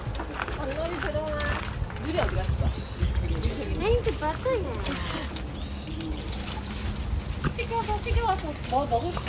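Small dogs whine and yip while playing.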